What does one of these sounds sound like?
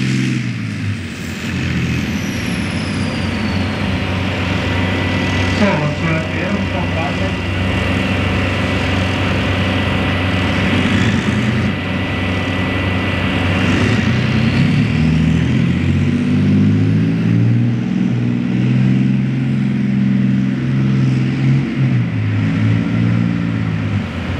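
A tank engine roars loudly and steadily close by.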